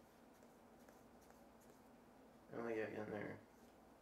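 A deck of playing cards is shuffled by hand.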